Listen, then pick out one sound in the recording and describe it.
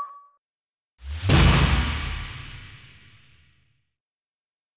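A low booming chime rings out and slowly fades.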